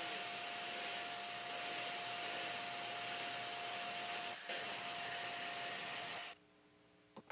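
Air hisses loudly from a blasting gun.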